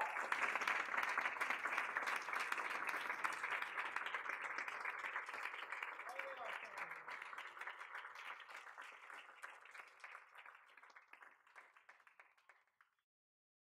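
An audience applauds, and the applause gradually fades away.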